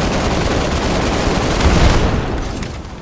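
Gunfire rattles in a video game.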